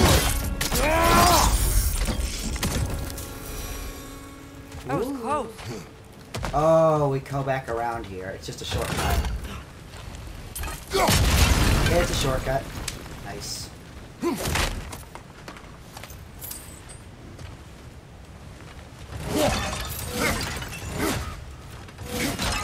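A deep-voiced man speaks gruffly nearby.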